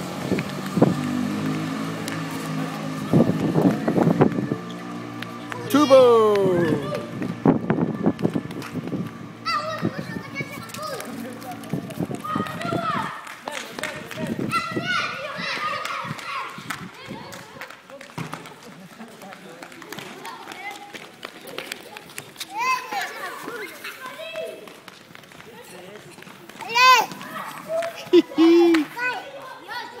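Young children shout and call out outdoors.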